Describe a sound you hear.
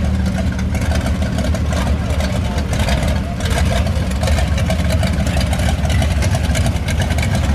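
A hot rod engine rumbles deeply as an old car drives slowly past close by.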